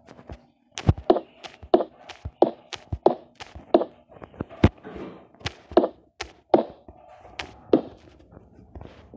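Blocks click softly as they are placed in a game.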